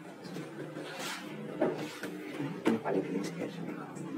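A man walks across a wooden floor.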